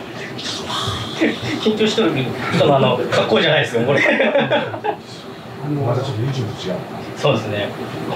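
A middle-aged man laughs loudly.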